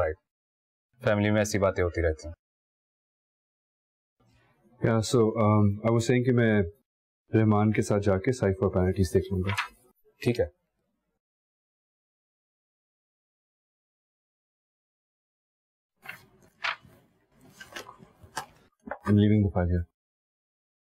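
A second man answers in a calm voice.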